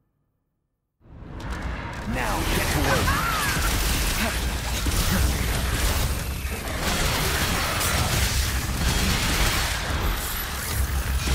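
Blows, slashes and monster cries clash in a loud game fight.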